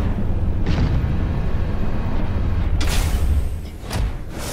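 A low engine rumbles loudly, then cuts out.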